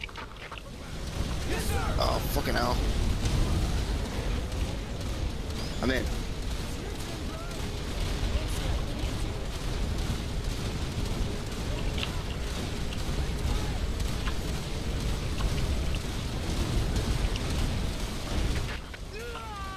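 Explosions boom and rumble.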